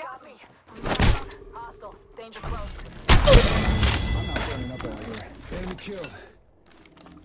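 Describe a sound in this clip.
Gunfire cracks in short bursts.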